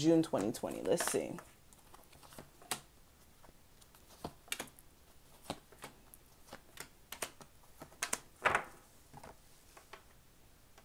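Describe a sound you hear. Cards slap softly onto a hard surface.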